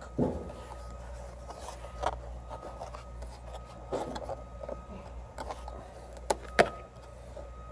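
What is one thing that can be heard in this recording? Fingers pry at a plastic trim clip, which clicks and snaps.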